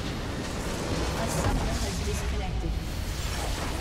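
A large structure explodes with a deep booming blast.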